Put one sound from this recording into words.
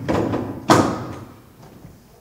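A door thuds shut, echoing in a large hall.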